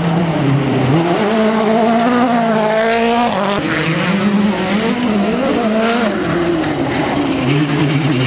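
Water splashes loudly as a car speeds through a stream.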